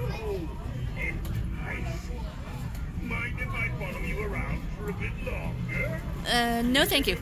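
A talking figure speaks in a low, creepy voice through a loudspeaker.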